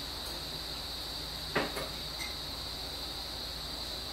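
Sauce trickles softly from a small bottle into a bowl of soup.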